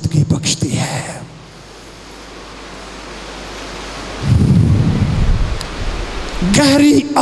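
An elderly man speaks with emotion into a microphone, heard through loudspeakers in an echoing hall.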